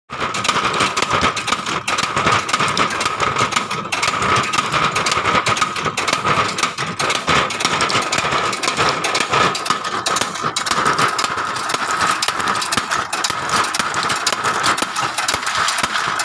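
A machine motor hums and rattles steadily.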